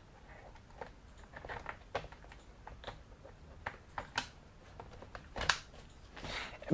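Plastic clicks and knocks as a laptop is handled on a hard table.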